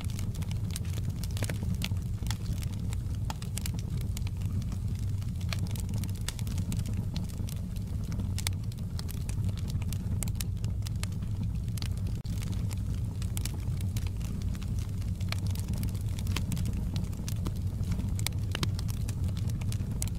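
A wood fire roars steadily.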